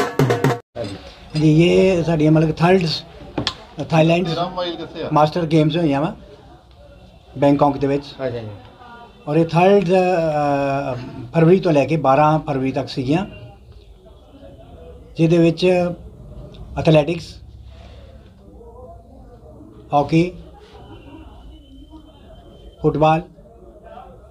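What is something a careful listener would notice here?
An elderly man speaks calmly and close by, with pauses.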